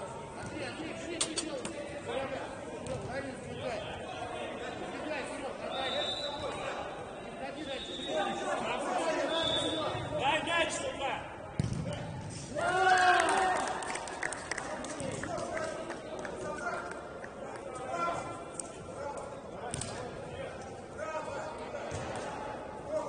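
Men shout and call out to each other in a large echoing hall.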